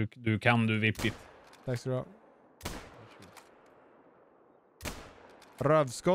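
A rifle fires loudly and the shot echoes away.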